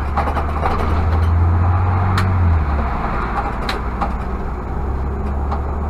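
A car engine hums steadily as the car drives along.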